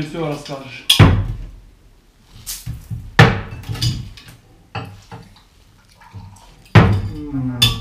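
Small objects knock sharply on a wooden box.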